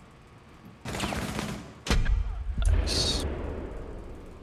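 Gunshots fire in short bursts at close range.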